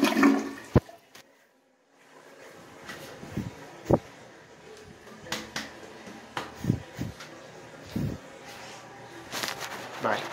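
Water swirls and gurgles in a toilet bowl.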